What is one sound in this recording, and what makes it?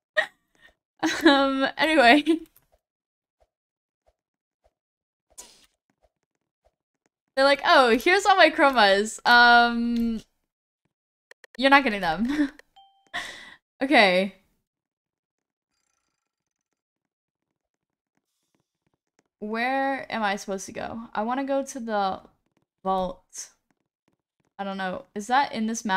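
A young woman talks with animation into a close microphone, in bursts with pauses.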